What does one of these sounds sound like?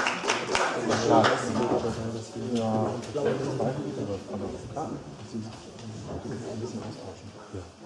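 A harp plays plucked notes.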